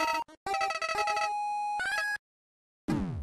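Bright electronic chiptune notes play quickly.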